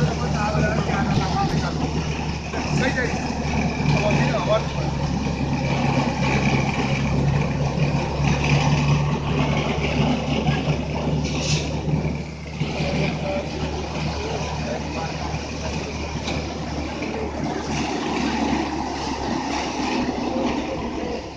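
Dry plant stalks crackle and rustle as they are fed into a threshing machine.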